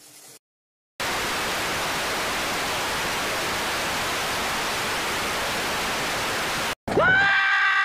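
Television static hisses steadily.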